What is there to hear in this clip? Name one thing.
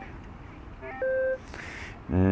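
A metal detector beeps briefly.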